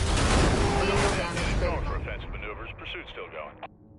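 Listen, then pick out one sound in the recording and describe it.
A car crashes with a heavy smash.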